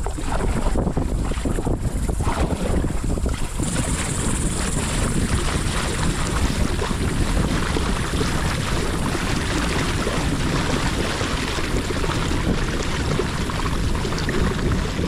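Water splashes and churns against a moving kayak.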